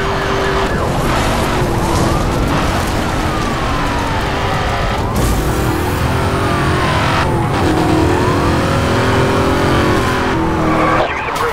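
A police siren wails, rising and falling.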